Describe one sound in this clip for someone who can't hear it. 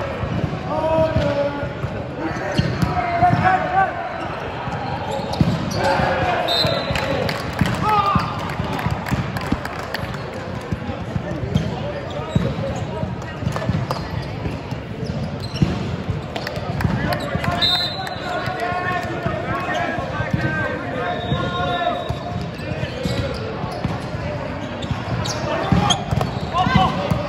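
Sneakers squeak on a gym floor.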